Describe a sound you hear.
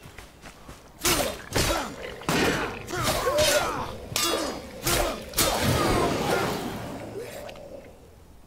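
An axe strikes a creature with heavy, ringing blows.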